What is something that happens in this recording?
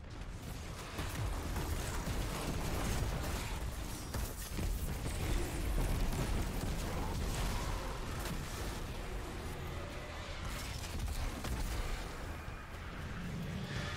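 Heavy blasts boom loudly.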